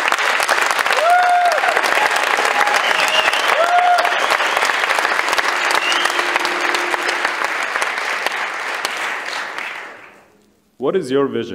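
An audience claps and cheers loudly in a large hall, then fades out.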